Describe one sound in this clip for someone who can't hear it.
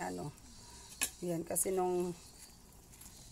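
A metal ladle stirs in a pot.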